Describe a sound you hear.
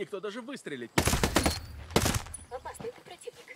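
Rifle shots ring out in quick bursts.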